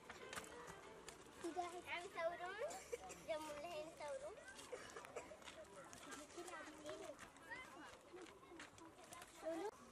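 Young children chatter and call out nearby, outdoors.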